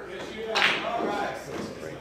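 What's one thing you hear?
A cue strikes a pool ball with a sharp click.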